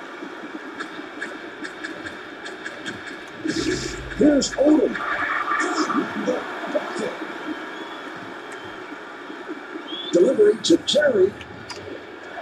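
Sneakers squeak on a basketball court.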